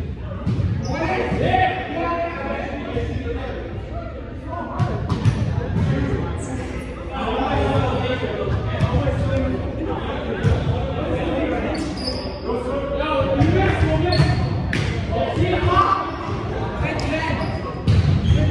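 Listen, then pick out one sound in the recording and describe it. Young men talk and call out to each other in a large echoing hall.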